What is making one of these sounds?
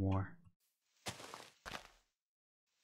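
Leaves crunch and rustle as blocks are broken.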